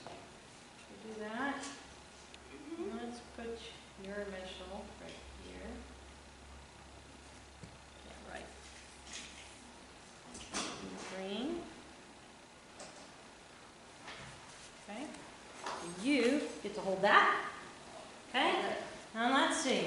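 A woman speaks quietly and calmly close by, in a room with some echo.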